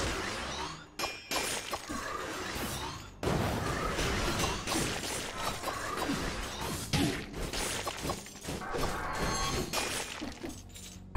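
Video game blades slash and hit enemies.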